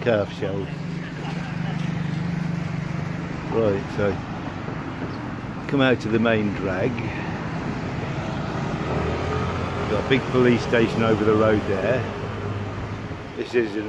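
Vehicle engines hum as traffic passes along a street.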